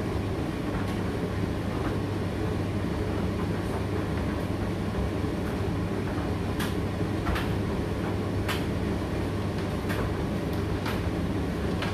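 A condenser tumble dryer hums and rumbles as it runs a drying cycle.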